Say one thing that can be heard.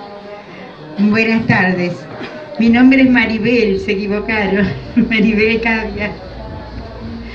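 An elderly woman reads aloud into a microphone, heard through a loudspeaker.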